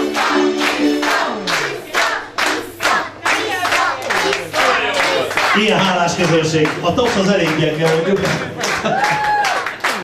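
A crowd of guests claps along in a steady rhythm.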